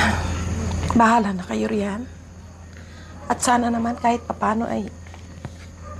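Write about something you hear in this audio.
A middle-aged woman speaks calmly up close.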